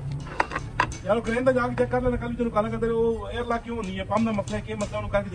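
A young man talks nearby.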